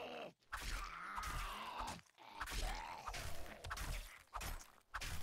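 A zombie growls and groans.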